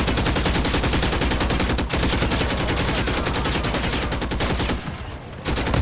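A heavy machine gun fires in a rapid, steady burst.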